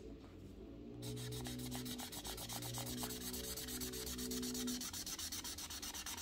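A marker squeaks and scratches softly on paper.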